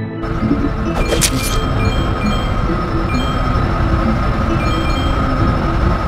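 A bright chime rings as points are collected.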